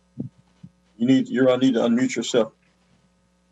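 A middle-aged man speaks briefly over an online call.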